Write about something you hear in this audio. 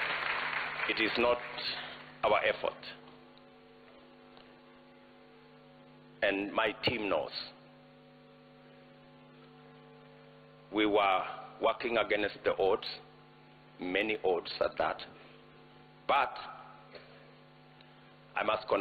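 A middle-aged man speaks slowly and deliberately into a microphone, with long pauses.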